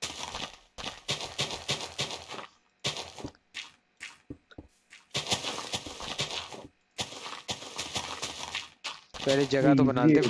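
Gravel and dirt crunch in quick bursts as blocks are dug.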